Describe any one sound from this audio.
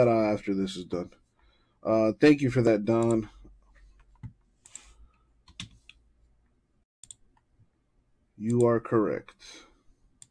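Keyboard keys click softly under fingers.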